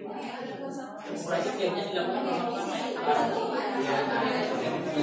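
Many men and women chatter at once nearby.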